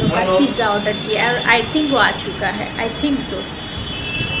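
A young woman talks cheerfully and close to the microphone.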